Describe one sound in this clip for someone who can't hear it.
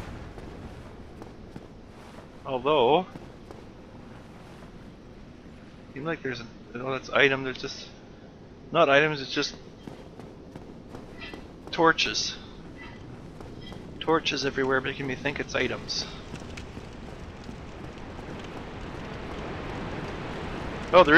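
Footsteps pad on stone.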